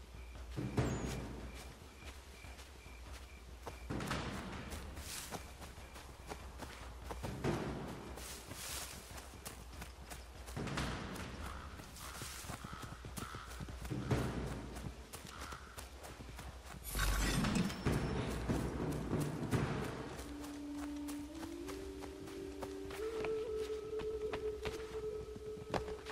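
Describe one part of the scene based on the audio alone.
Footsteps run over forest ground.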